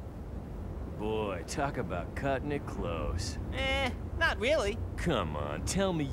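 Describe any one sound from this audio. A young man's voice speaks with animation, as if from a cartoon.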